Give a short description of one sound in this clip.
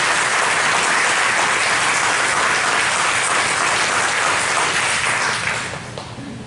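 A crowd applauds in a large hall and then fades.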